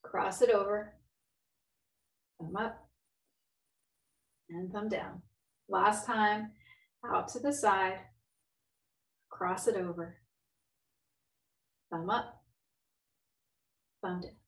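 A woman speaks calmly and clearly into a close microphone, giving instructions in short phrases.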